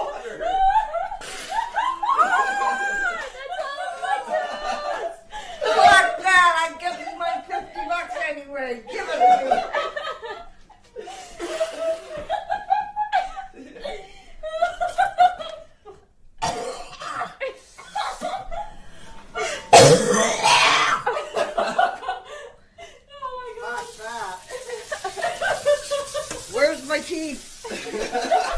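An elderly woman talks and laughs close by.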